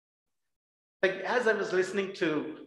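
A man speaks at a lectern through a microphone, heard over an online call.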